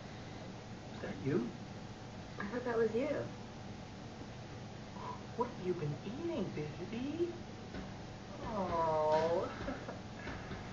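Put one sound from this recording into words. A cockatoo squawks and chatters in short bursts, close by.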